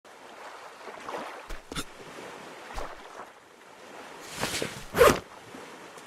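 Gentle waves lap against a sandy shore.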